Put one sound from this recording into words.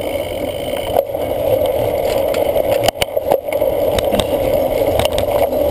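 A cyclocross bike rattles over bumpy ground.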